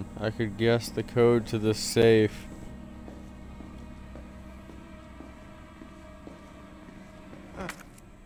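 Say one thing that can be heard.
Footsteps walk slowly across a hard floor.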